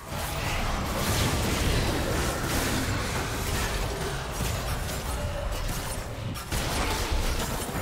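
Video game spell blasts and weapon clashes crackle and boom during a battle.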